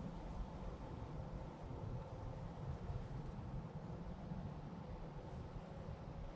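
Wind rustles through tree leaves overhead.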